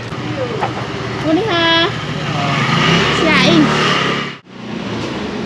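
A scooter engine runs and pulls away.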